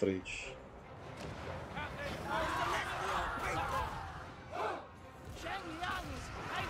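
A battle rages with a distant roar of clashing troops.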